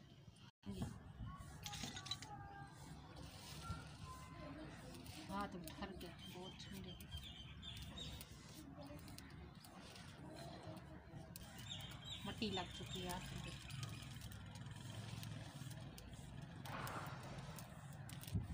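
Dry grass rustles and crackles as it is handled.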